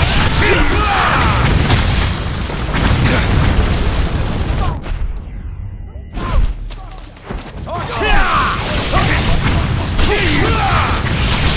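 A blade slashes into an enemy in a fight.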